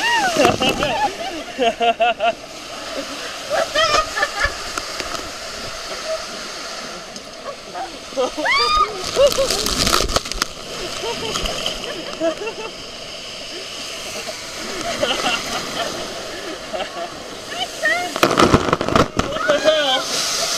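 Water rushes and splashes down a slide.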